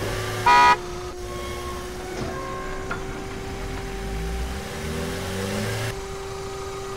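A car engine hums as a car drives slowly.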